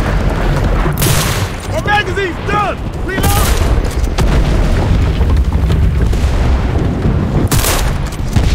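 Loud gunshots ring out with a rushing blast.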